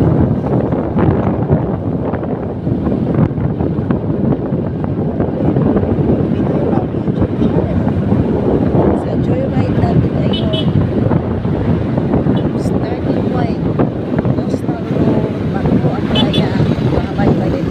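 Wind rumbles and buffets loudly as a motorcycle rides along.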